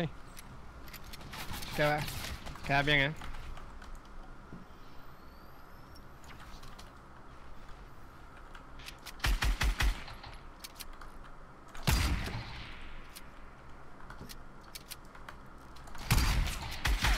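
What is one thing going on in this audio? Game building pieces snap into place with quick clicks and thuds.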